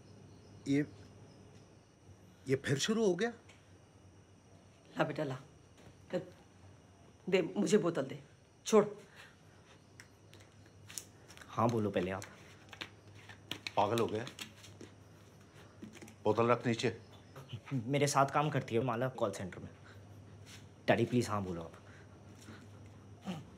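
A young man speaks in a tense, pleading voice.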